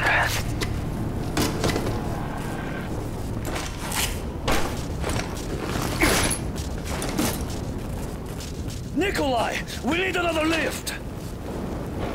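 Gunfire and explosions crack and boom repeatedly.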